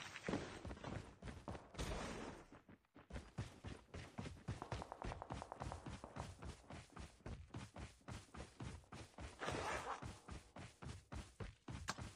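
Footsteps run quickly over dirt and grass.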